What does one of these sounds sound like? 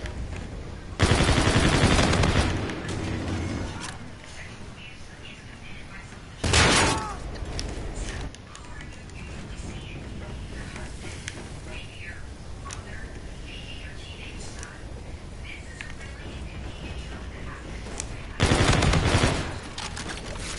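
Rapid gunfire bursts loudly several times.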